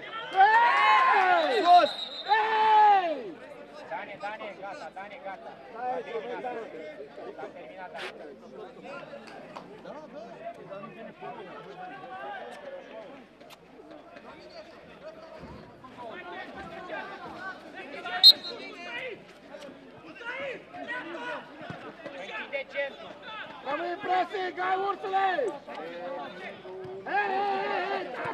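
A crowd murmurs and cheers in a stadium.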